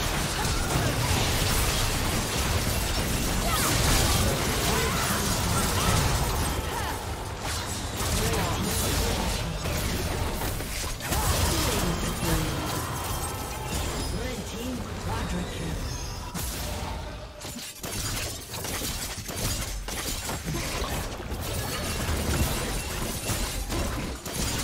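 Video game combat effects crackle, clash and boom.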